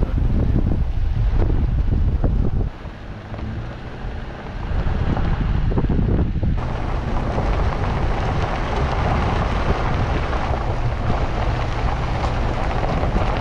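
A vehicle drives along a gravel road with a low rumble.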